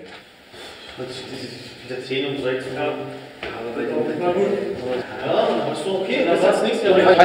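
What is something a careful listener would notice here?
Young men talk with one another at close range.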